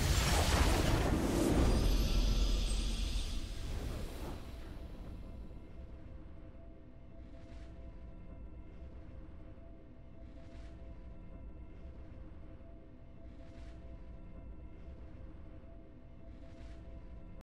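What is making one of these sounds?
A triumphant fanfare plays softly.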